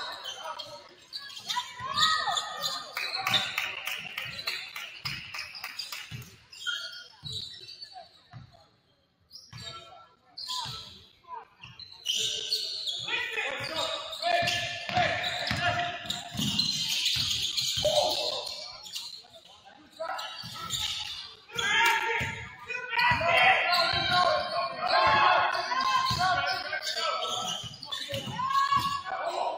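A basketball thumps on a hard floor as it is dribbled.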